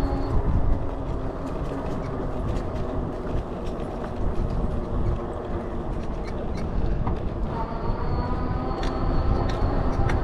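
Tyres roll steadily over pavement.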